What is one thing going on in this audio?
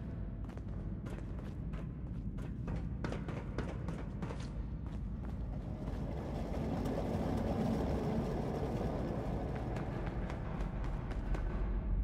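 Footsteps echo on a hard floor in a large echoing tunnel.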